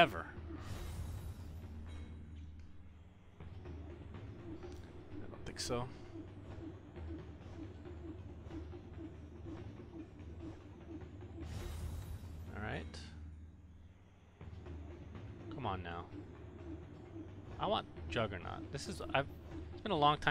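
A young man speaks with animation into a microphone.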